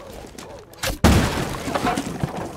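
An explosion blasts through a wall with a loud bang.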